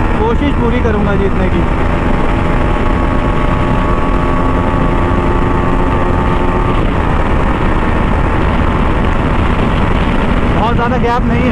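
A motorcycle engine revs up and down as gears change.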